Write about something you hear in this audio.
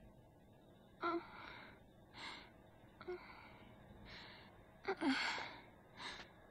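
A young woman speaks softly and with concern.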